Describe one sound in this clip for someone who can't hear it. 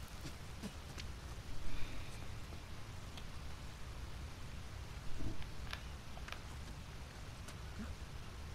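Hands scrape and tap against rock.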